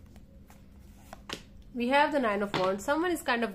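A card is laid down on a wooden table with a soft tap.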